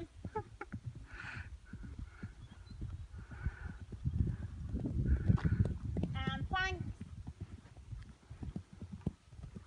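Horse hooves thud on grass at a canter.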